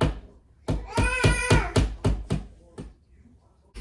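A hammer taps sharply on a nail in a wall, ringing briefly after each blow.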